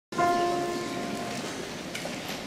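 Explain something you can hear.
A mixed choir sings a held note in a hall and breaks off.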